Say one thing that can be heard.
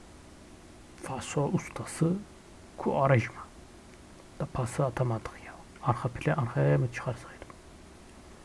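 A man speaks with animation close to a headset microphone.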